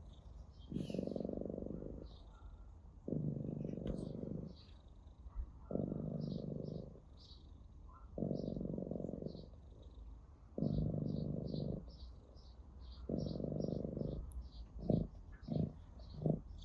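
A cat purrs loudly and close by, in slow rhythmic waves.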